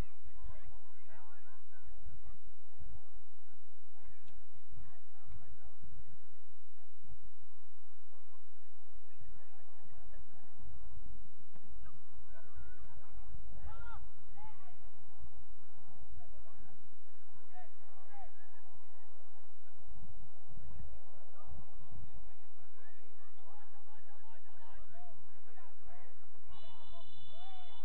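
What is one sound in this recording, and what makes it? Young women shout to each other in the distance outdoors.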